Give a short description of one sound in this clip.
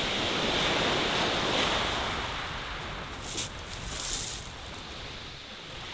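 A fishing rod swishes through the air as it is cast.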